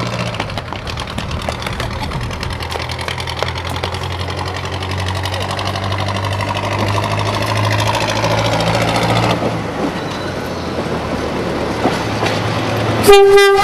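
A diesel railcar engine rumbles steadily as the railcar rolls closer.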